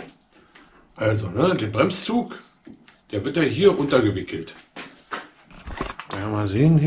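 A man speaks calmly to the listener, close by.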